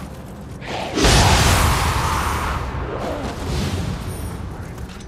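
A magical burst crackles and booms.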